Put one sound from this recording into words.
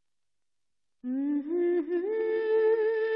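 A young woman sings a long, held melody.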